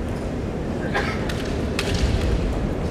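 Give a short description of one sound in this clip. Bamboo swords clack together sharply.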